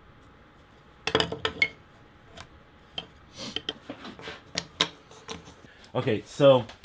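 A metal scriber scratches across a wooden board.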